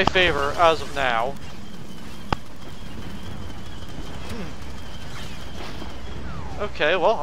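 Blaster guns fire rapid, warbling laser shots.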